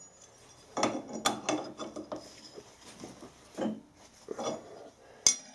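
A metal wrench clanks and knocks against a lathe chuck.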